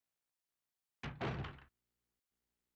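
A heavy door slams shut with a low thud.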